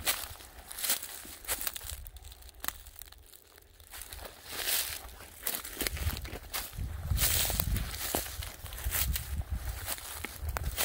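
Footsteps crunch through dry leaves and pine needles.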